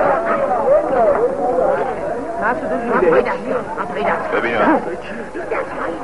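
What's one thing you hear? Several men sing together, heard through a muffled old recording.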